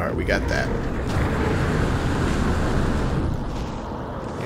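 A teleporter hums and whooshes.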